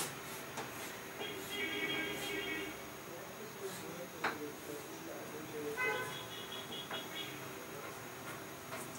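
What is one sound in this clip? Chalk taps and squeaks on a board.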